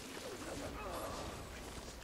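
A whip cracks and lashes through the air.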